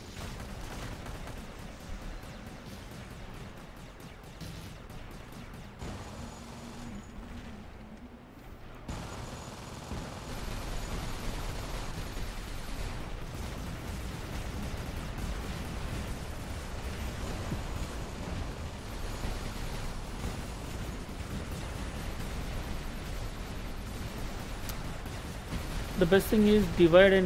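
Heavy mechanical footsteps of a giant robot thud steadily.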